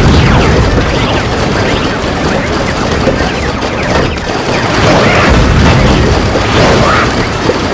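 Game effects pop and splat rapidly.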